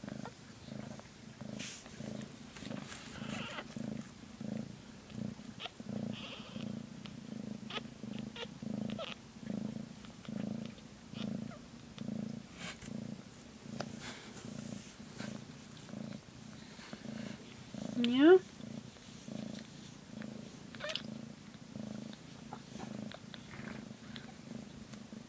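A cat purrs steadily and closely in slow, even pulses.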